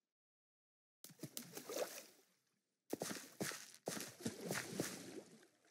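Water pours and splashes from a bucket.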